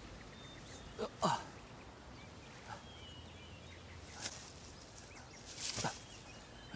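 A young man groans weakly up close.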